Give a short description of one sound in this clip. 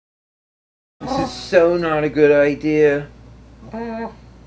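A man sings in a silly cartoon voice, close to the microphone.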